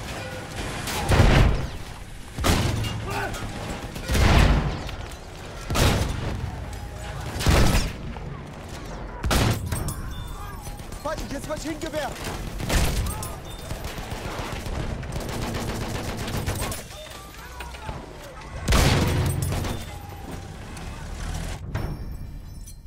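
Tank cannon shots boom loudly, one after another.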